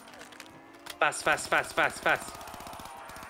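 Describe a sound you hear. A gun fires several loud shots in quick succession.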